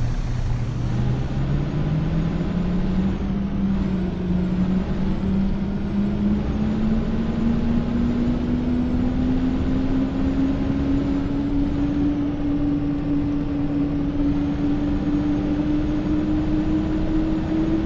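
A bus engine revs up, its pitch rising steadily as the bus speeds up.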